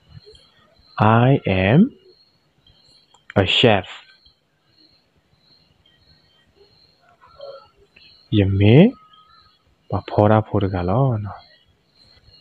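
A young man speaks slowly and clearly through a microphone, in short phrases with pauses.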